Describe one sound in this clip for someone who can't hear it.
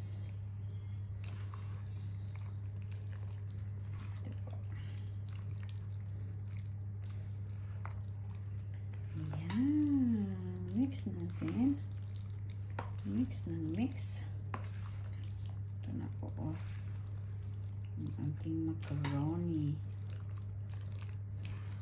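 A spatula and spoon stir pasta salad in a plastic bowl.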